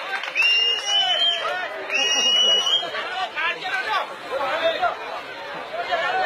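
A crowd of men shouts excitedly outdoors.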